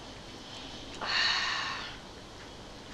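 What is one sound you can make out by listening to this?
A crisp crunches as a young woman bites it.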